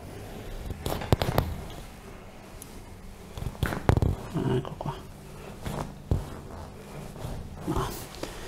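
Joints crack sharply as a back is pressed.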